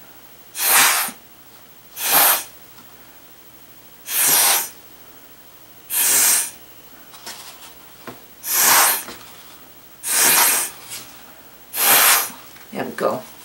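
Short bursts of breath blow hard through a straw.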